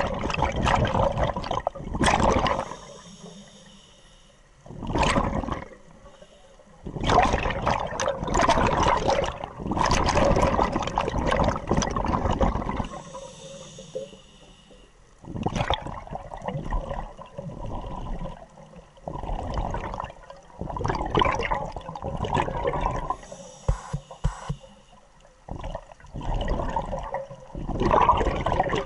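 A diver breathes through a scuba regulator underwater, with loud bubbling bursts every few seconds.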